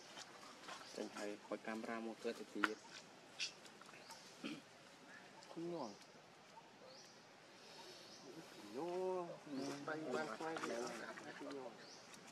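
A baby monkey suckles with soft smacking sounds.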